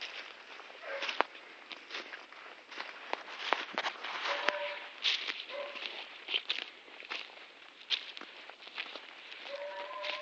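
Footsteps crunch and rustle through dry leaves.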